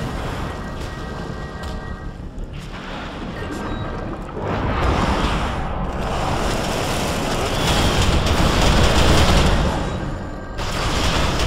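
Energy blasts crackle and zap in a battle.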